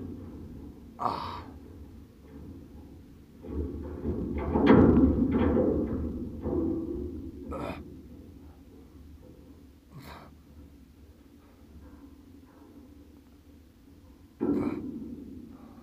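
A man close by breathes out hard with effort.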